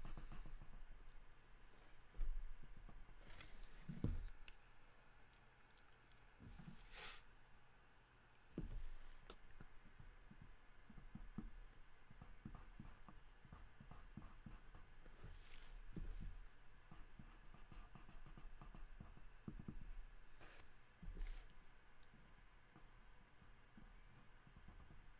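A pen scratches and squeaks across paper.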